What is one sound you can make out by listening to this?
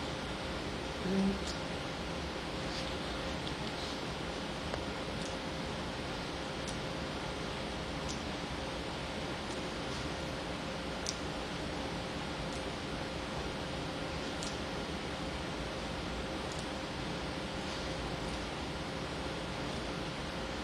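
Fingertips tap lightly on a glass surface.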